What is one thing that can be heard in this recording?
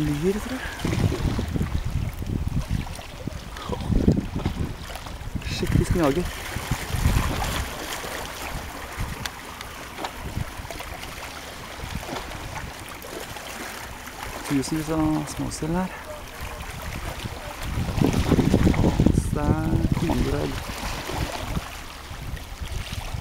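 Water laps and ripples gently close by.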